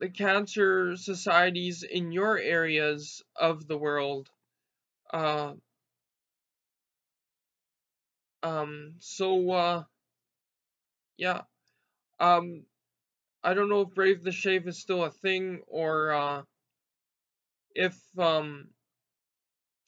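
A young man talks calmly close to a microphone, with pauses.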